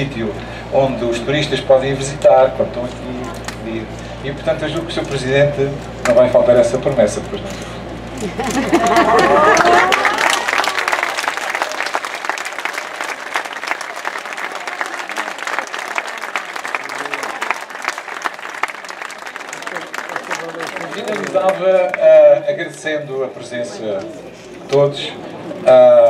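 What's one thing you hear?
An elderly man speaks with animation through a microphone and loudspeakers.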